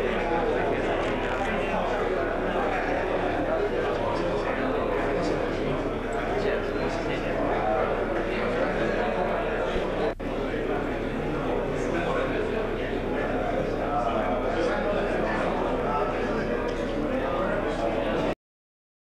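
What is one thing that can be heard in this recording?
A crowd of men chat and murmur nearby.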